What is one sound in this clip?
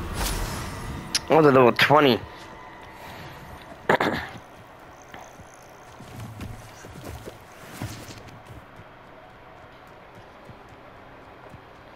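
Footsteps patter on a dirt path.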